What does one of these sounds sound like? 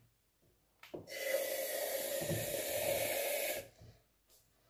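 Whipped cream hisses out of a spray can.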